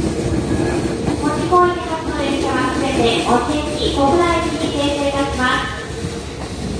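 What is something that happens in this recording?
A train's electric motors whine in rising steps as it pulls away.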